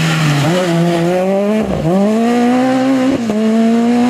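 Gravel sprays and crunches under a car's tyres.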